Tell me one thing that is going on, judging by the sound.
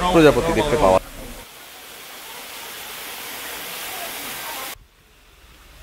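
A waterfall splashes and rushes steadily.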